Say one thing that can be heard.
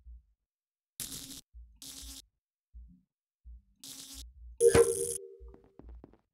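Game wires click and buzz as they connect.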